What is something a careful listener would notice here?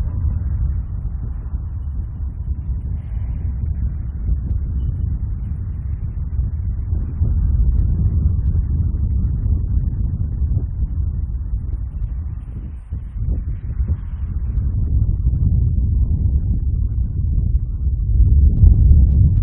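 A horse canters on grass with dull hoofbeats.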